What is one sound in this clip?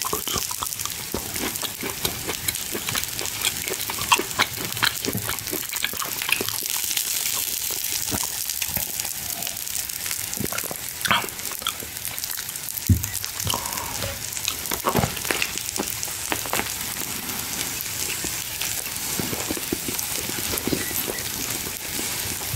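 Cutlery clinks and scrapes on a plate.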